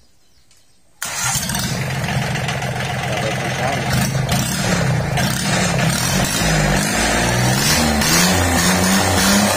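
A small diesel engine starts up and runs loudly and steadily close by.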